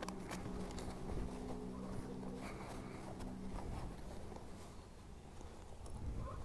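Fabric rustles as a jacket pocket is handled.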